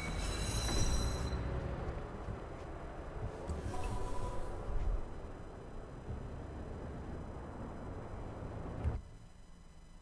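Footsteps walk on a hard street.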